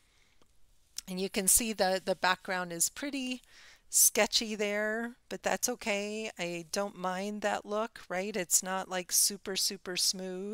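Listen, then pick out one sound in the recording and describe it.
A middle-aged woman talks calmly and closely into a microphone.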